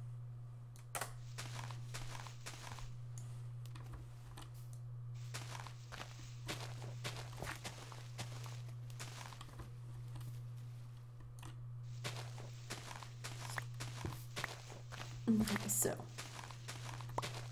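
Dirt crunches in quick, repeated bursts as it is dug away.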